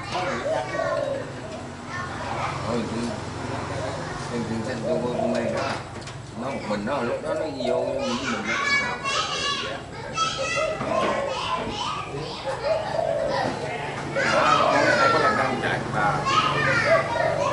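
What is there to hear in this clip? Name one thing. Several men talk and laugh together, close by.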